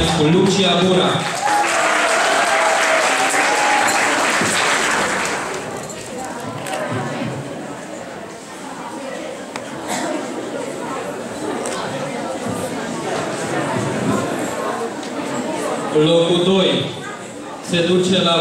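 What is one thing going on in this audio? An older man reads out over a microphone in a large hall.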